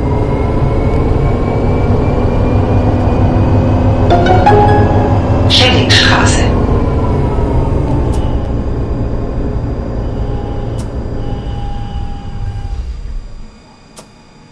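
A tram rumbles along its rails, then slows and comes to a stop.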